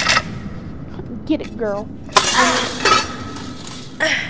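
A metal gate rattles as it is pushed open.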